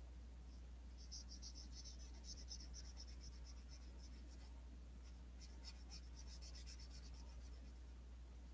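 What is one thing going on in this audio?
A felt-tip marker scratches softly across paper.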